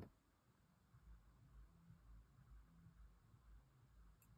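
A metal scoop scrapes in a small dish.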